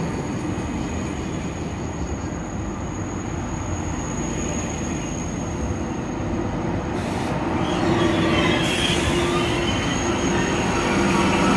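A train rumbles past close by, slowly picking up speed.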